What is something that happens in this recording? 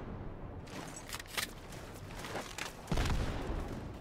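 A gun clicks and clatters as it is swapped.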